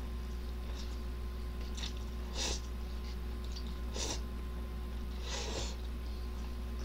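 A young man slurps noodles loudly.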